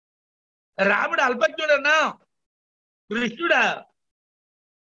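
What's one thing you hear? An elderly man speaks with animation into a microphone close by.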